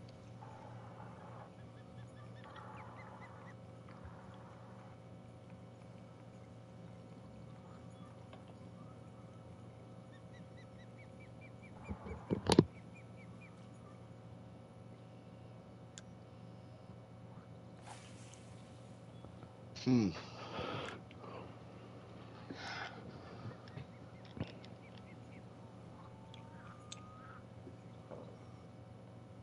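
A fishing reel clicks as line is wound in.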